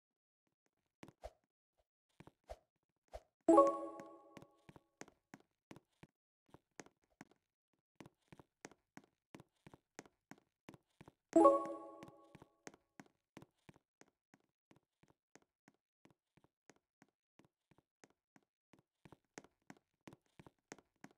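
Quick, light footsteps patter steadily.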